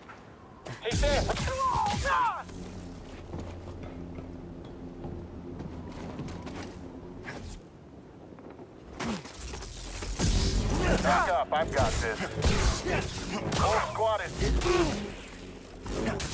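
A lightsaber hums and whooshes as it swings.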